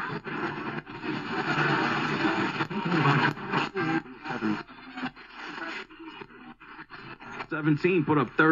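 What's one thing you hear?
A radio hisses with static as it is tuned between stations.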